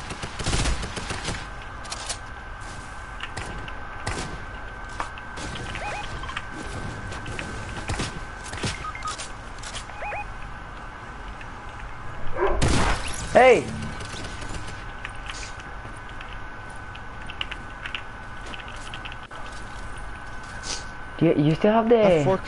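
Gunshots and building clatter ring out sharply.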